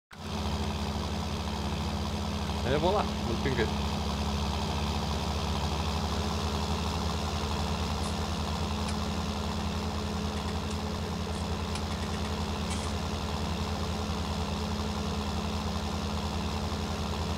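A mower whirs as it cuts grass.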